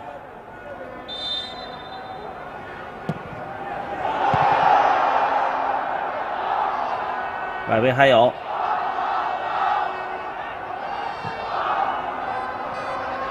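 A stadium crowd cheers and roars, swelling loudly at moments.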